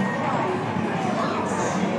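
Electronic game music plays from a television.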